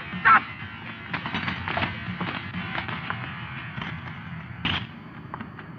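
A man shouts and grunts during a scuffle.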